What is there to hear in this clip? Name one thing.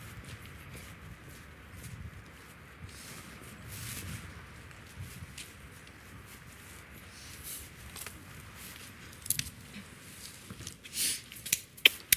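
Footsteps scuff along a path outdoors.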